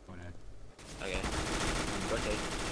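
A gun fires a burst of rapid shots.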